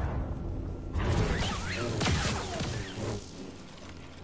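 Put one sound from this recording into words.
Lightsabers hum and swoosh through the air.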